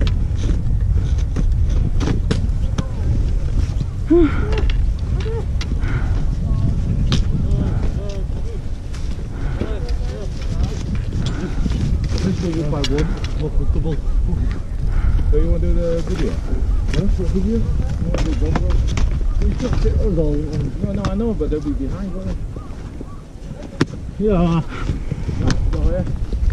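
Skis scrape and swish over snow.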